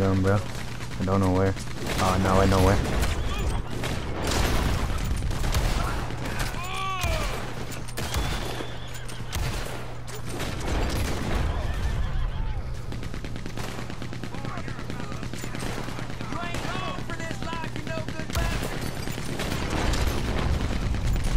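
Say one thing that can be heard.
Gunshots crack out again and again.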